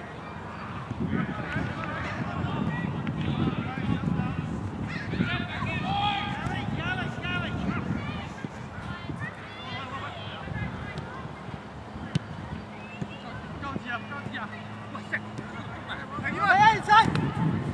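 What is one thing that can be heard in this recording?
Young men shout to each other across an open field in the distance.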